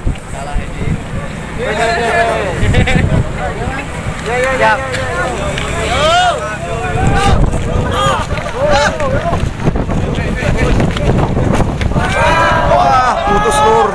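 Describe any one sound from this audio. A crowd of people shouts and cheers nearby outdoors.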